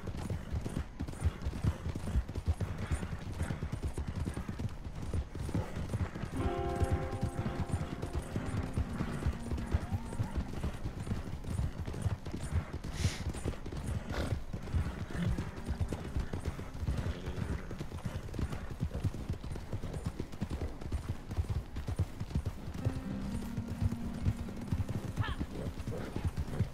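Horses' hooves pound steadily on a dirt track at a gallop.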